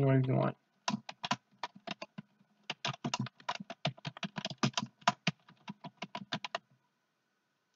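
Keys on a keyboard click rapidly as someone types.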